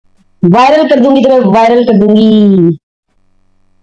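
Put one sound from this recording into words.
A man speaks close by in a drawn-out, sing-song voice.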